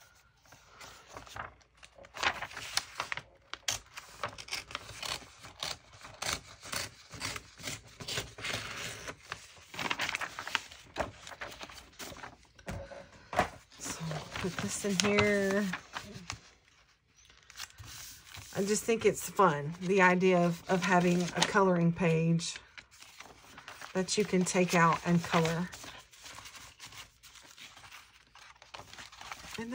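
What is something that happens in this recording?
Paper and card rustle and slide as they are handled.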